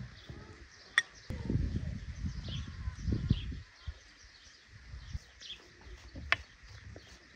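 A spoon clinks against a small bowl.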